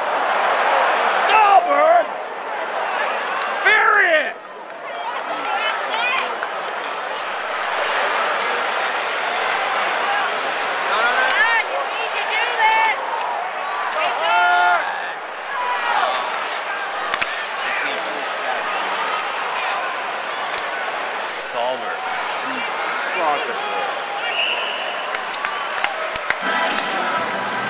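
A large crowd roars and cheers in an echoing arena.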